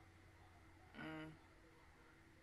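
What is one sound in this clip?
A young woman makes a short humming sound close to a microphone.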